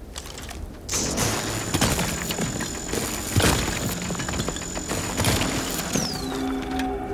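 A laser cutter hisses and crackles against rock.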